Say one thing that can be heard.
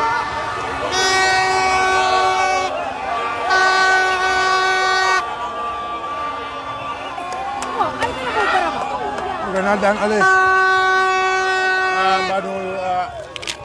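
A horn blares in long steady blasts.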